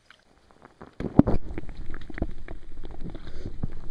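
Water swirls and bubbles close up.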